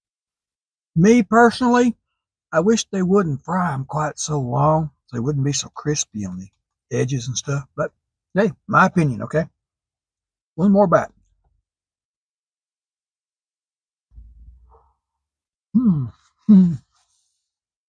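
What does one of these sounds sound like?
An elderly man speaks with animation close to a microphone.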